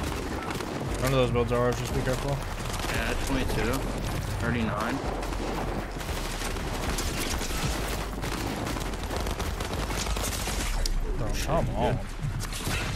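A young man speaks into a close microphone with animation.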